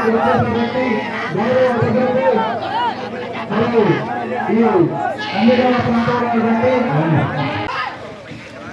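A crowd of men shouts and cheers loudly nearby.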